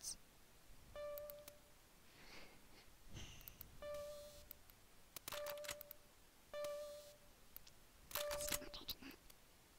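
Short electronic beeps sound as menu choices change.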